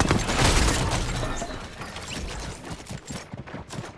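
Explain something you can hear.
Items clatter and jingle as they scatter across the floor.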